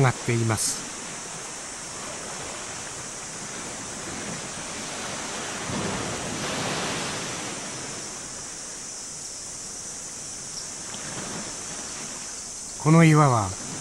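Water laps gently against rocks.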